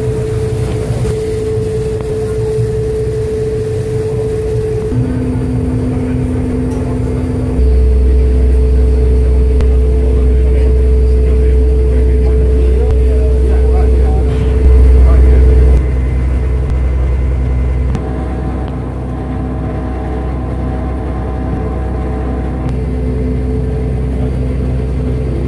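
Water washes past a boat's hull.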